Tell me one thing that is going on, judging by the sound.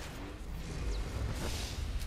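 Electricity crackles loudly.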